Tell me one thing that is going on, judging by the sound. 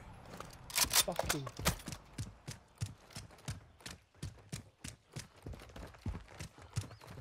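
Quick footsteps run on hard pavement.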